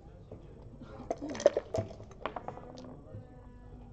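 Dice rattle and clatter onto the board.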